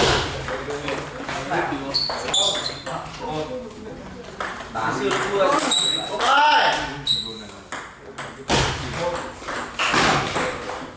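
Several men talk and call out nearby.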